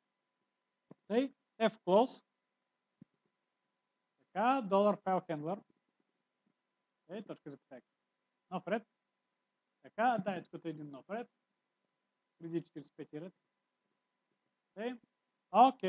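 A man speaks calmly through a microphone, explaining in short phrases.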